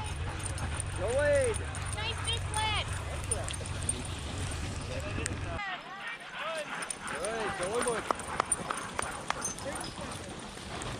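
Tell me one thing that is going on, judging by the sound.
Sled dogs bark and yelp excitedly.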